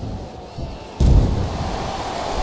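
A body slams down onto a wrestling ring mat with a heavy thud.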